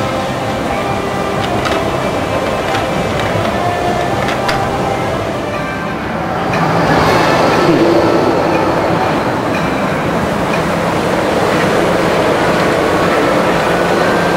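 A monorail train hums and whirs as it glides past overhead.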